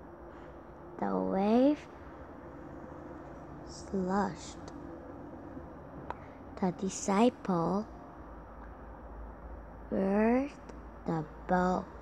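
A young girl reads aloud slowly in short bursts, close to a microphone.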